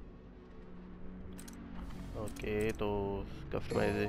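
A short menu click sounds as a selection changes.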